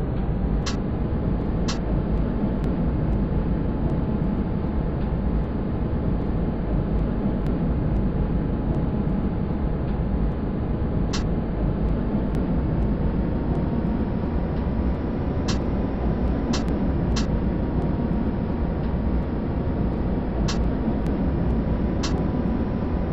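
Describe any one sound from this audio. Tram wheels click over rail joints.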